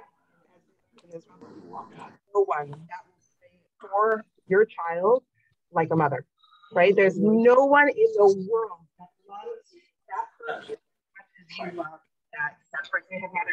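A middle-aged woman talks with animation over an online call.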